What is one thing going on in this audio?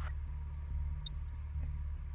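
A game menu gives a short click as a page opens.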